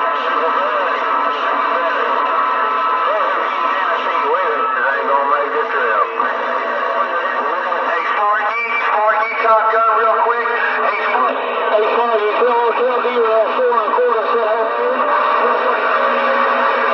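Static hisses steadily from a radio receiver.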